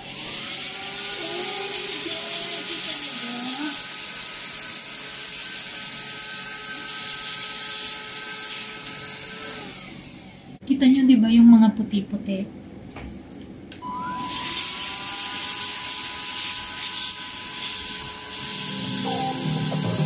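A handheld vacuum cleaner runs with a steady high whine.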